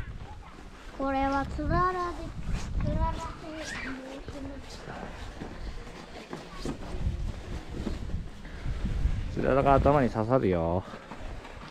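A young child speaks brightly close by.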